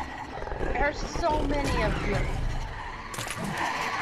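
Hoarse figures groan and moan nearby.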